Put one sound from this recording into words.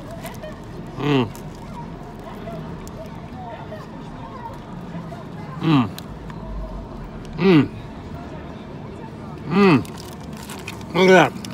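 A man hums with pleasure.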